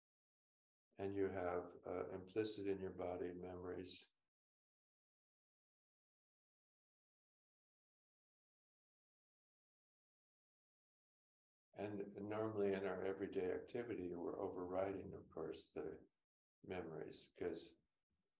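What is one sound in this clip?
An older man speaks calmly and close to a microphone, with long pauses.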